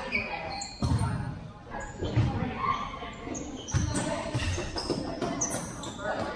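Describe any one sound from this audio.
Players shout and call out to each other in a large echoing gym.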